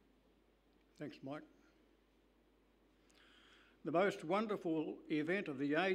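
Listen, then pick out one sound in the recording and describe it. An elderly man speaks slowly into a microphone, heard through a loudspeaker in a large hall.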